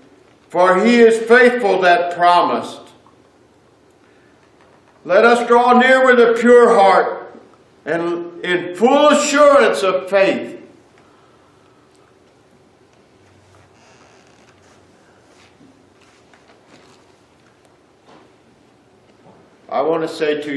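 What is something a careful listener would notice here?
A middle-aged man speaks earnestly into a microphone, pausing between phrases.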